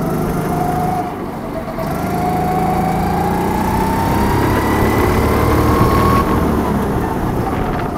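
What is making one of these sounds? A go-kart engine buzzes close by, rising and falling in pitch as it speeds up and slows down.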